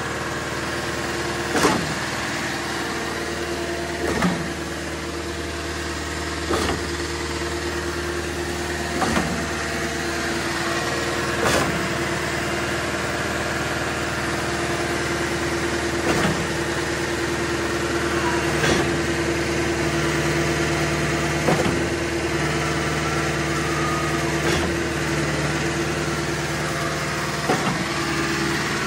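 A machine's engine hums steadily close by.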